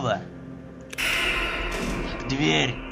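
A heavy metal door slides shut with a rumble.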